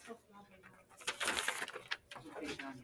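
Paper rustles as a sheet is turned.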